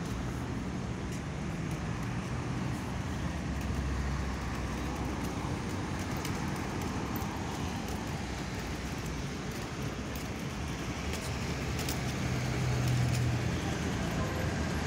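Steady city traffic noise fills the air outdoors.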